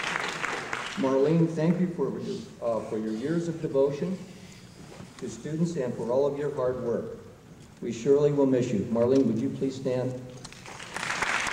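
A man speaks steadily through a microphone.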